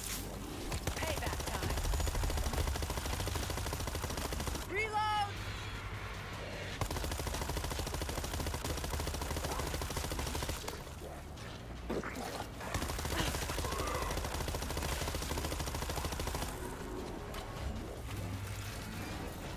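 Zombies snarl and shriek.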